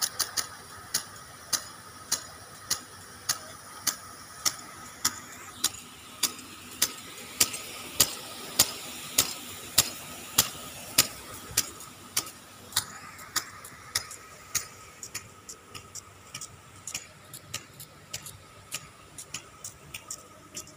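Water sprays and hisses from sprinklers.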